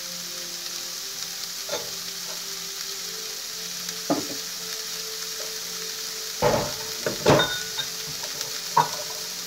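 Vegetables sizzle softly in a frying pan.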